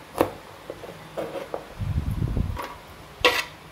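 A knife cuts garlic on a plastic cutting board.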